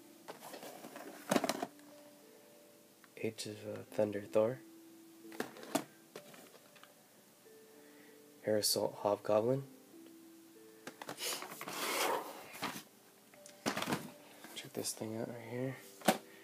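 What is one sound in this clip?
Plastic toy packaging crinkles and rustles in a hand.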